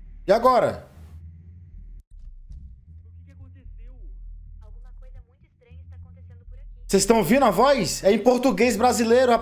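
A man shouts with animation into a close microphone.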